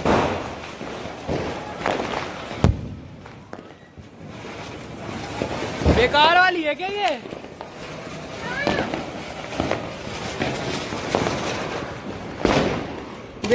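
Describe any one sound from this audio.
Firecrackers go off with sharp bangs.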